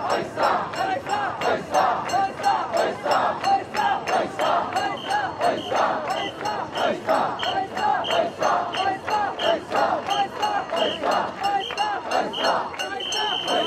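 A large crowd of men chants loudly and rhythmically outdoors.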